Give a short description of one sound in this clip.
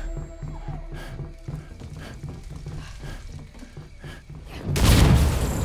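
Heavy footsteps run quickly across a hard floor.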